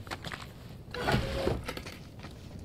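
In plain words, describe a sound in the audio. A wooden drawer scrapes open.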